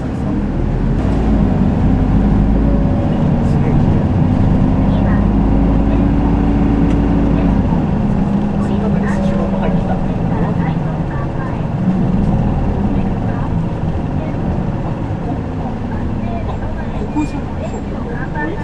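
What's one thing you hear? A motor scooter engine hums steadily, dropping and rising in pitch as it slows and speeds up.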